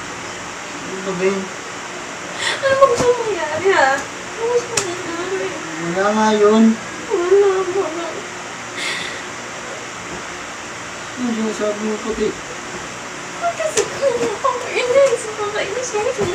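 A young woman talks quietly, a little way off.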